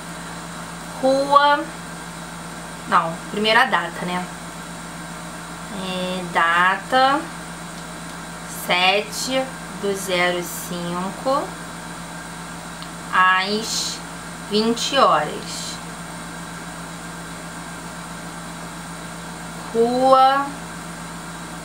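A young woman speaks calmly and close to a microphone, in short bursts with pauses.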